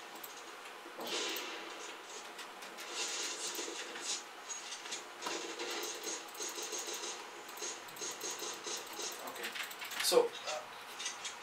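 Gunshots from a video game pop and crack.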